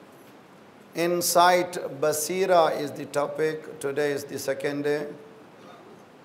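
A middle-aged man speaks calmly into a microphone in a reverberant hall.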